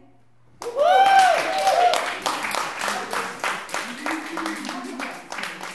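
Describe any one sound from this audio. Several women laugh and shriek excitedly in an echoing stairwell.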